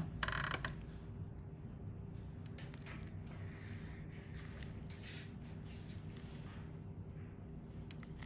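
Latex gloves rub and squeak softly against skin.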